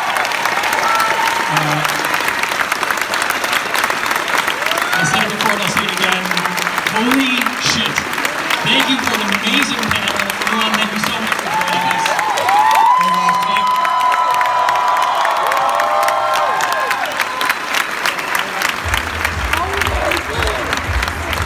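A large audience claps and cheers loudly in a big hall.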